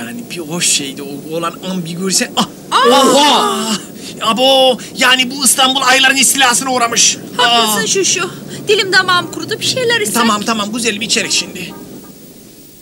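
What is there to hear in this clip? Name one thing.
A man talks loudly and with animation outdoors, close by.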